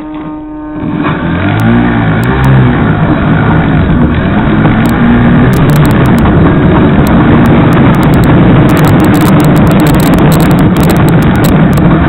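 A small motor whines and rises in pitch as it speeds up.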